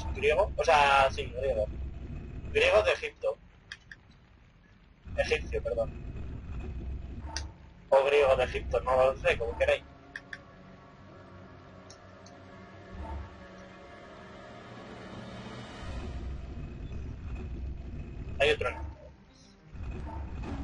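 A heavy stone block grinds and scrapes as it is pushed.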